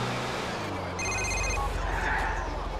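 A phone beeps.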